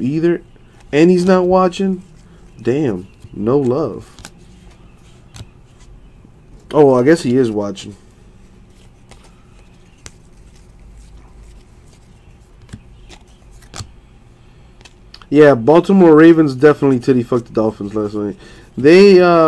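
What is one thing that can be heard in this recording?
Trading cards rustle and click as hands flip through them.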